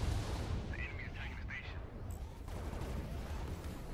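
Laser weapons fire in quick bursts.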